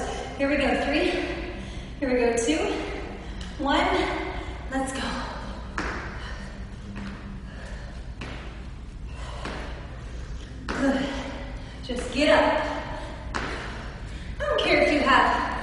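A young woman speaks with energy in an echoing room.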